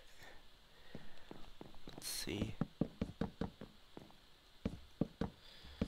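Wooden blocks thud softly as they are set down one after another.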